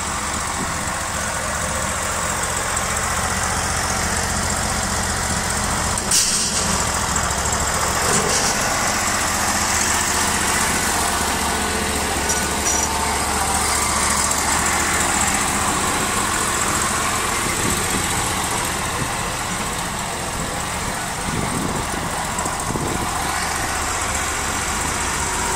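A small petrol engine idles steadily nearby.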